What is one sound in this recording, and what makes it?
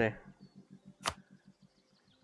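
A game menu closes with a short click.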